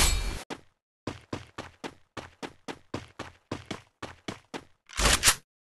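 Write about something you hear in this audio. Quick footsteps patter over grass at a steady running pace.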